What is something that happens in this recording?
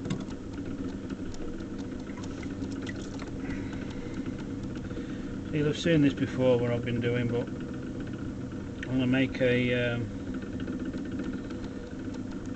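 A potter's wheel whirs steadily.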